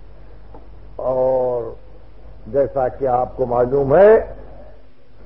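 An elderly man recites in a drawn-out, chanting voice through an old recording.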